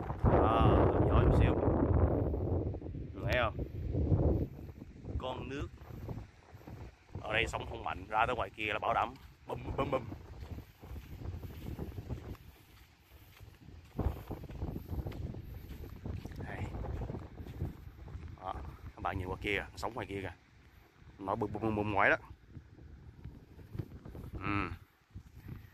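Shallow water laps gently at a sandy shore.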